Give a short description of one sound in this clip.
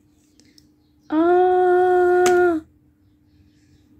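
A small plastic doll topples over and clatters onto a hard floor.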